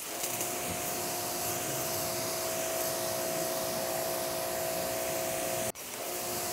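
A pressure washer sprays water with a loud, steady hiss.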